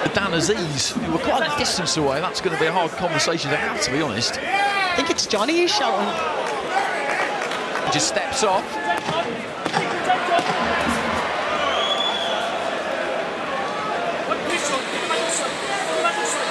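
Boxing gloves thud against bodies in quick punches.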